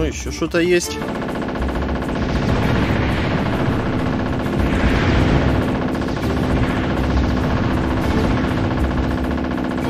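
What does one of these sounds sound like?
A helicopter engine whirs steadily.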